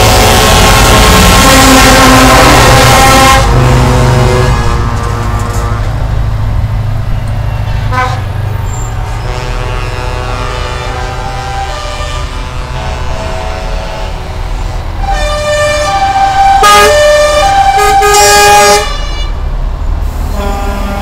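Heavy truck engines rumble as trucks drive past one after another.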